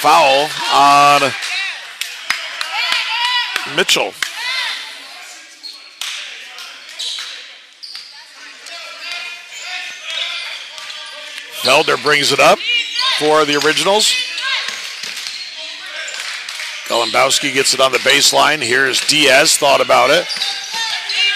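Spectators shout and cheer loudly, echoing in a large hall.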